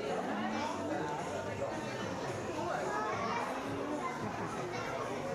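A crowd of adults and children chatters indoors in an echoing hall.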